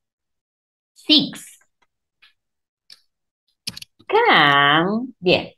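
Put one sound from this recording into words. A woman speaks animatedly through an online call, drawing out one word in a rising and falling voice.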